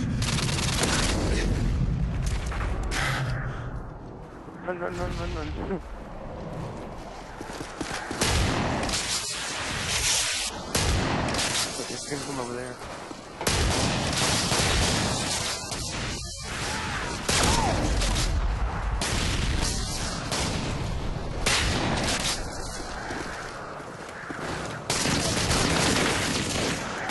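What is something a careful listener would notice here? Rapid gunfire crackles in loud bursts.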